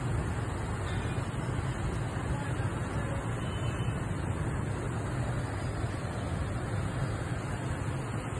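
Muddy floodwater rushes and roars steadily close by.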